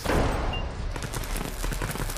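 Gunshots crack and bullets ping off metal.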